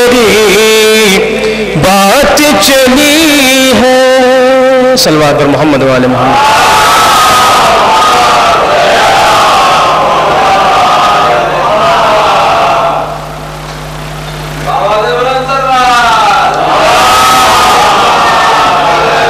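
A young man chants loudly into a microphone, amplified through loudspeakers.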